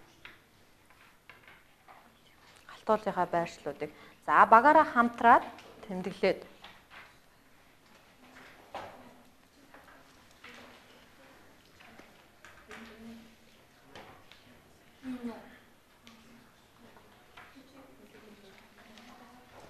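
Children murmur and talk quietly among themselves.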